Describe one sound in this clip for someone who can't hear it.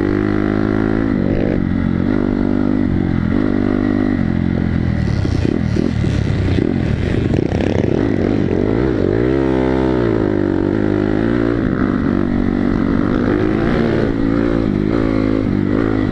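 A dirt bike engine roars up close, revving up and down.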